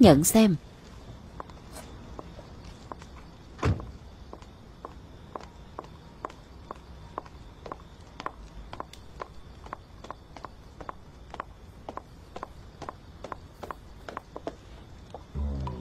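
High heels click steadily on a hard floor.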